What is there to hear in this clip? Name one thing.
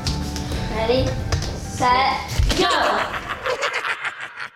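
A young girl and boy talk excitedly nearby.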